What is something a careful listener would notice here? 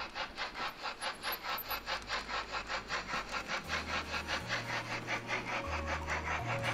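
A model steam train chugs along with a quick, steady puffing rhythm.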